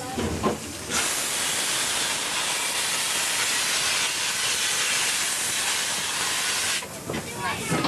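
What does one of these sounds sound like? A steam locomotive hisses loudly, letting off steam.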